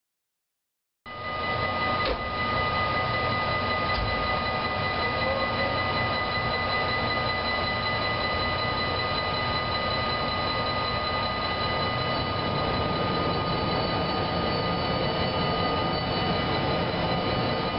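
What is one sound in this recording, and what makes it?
An electric locomotive hums as it slowly approaches.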